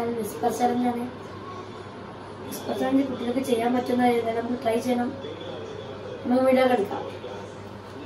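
A boy speaks clearly and with animation, close by.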